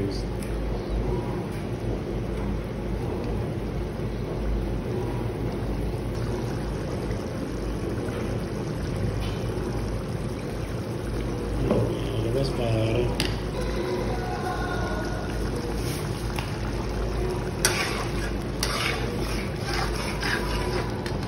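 Sauce simmers and bubbles in a pan.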